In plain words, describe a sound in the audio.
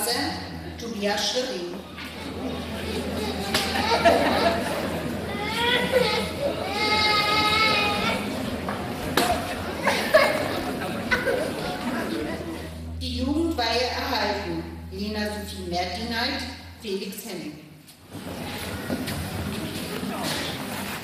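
A middle-aged woman speaks calmly into a microphone, heard through a loudspeaker in an echoing hall.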